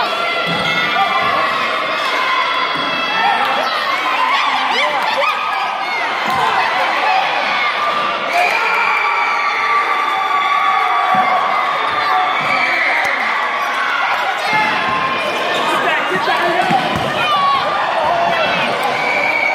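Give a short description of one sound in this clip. A basketball bounces with dull thumps on a wooden floor.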